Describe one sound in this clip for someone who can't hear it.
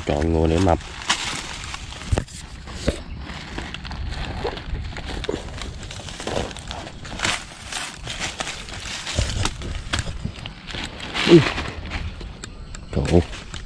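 Dry leaves rustle and crackle on the ground.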